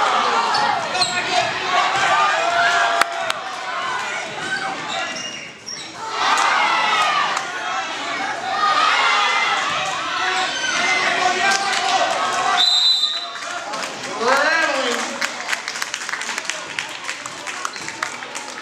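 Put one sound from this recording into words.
Spectators talk and cheer loudly in a large echoing gym.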